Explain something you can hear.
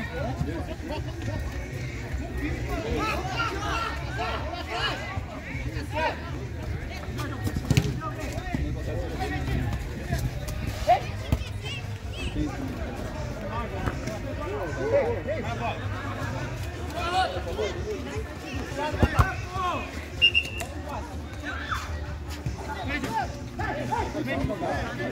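Men shout and call out across an outdoor pitch.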